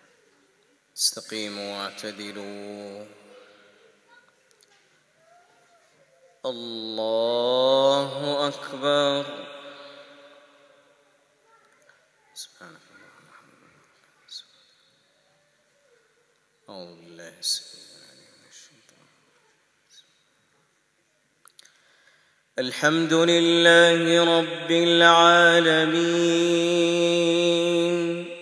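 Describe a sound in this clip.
A middle-aged man chants melodically into a microphone, echoing in a large hall.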